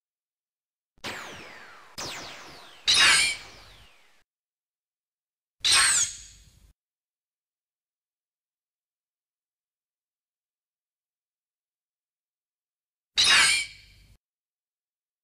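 A sword strikes a creature with sharp hit sounds.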